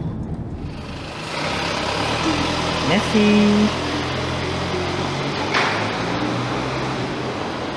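A car rolls slowly along a narrow street.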